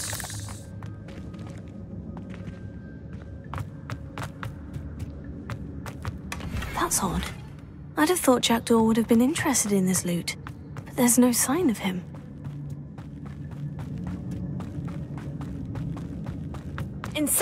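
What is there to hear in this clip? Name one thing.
Footsteps tread on rocky ground.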